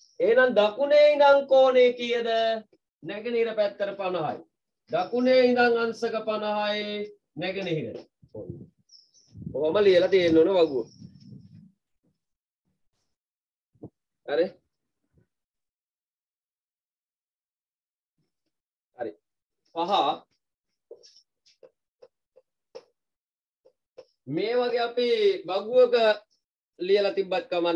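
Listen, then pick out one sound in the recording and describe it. A young man speaks calmly and clearly nearby, explaining in pauses.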